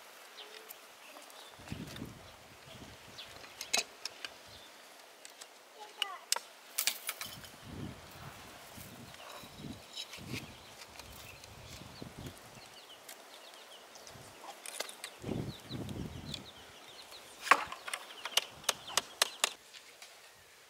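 A man knocks and scrapes wood with a hand tool.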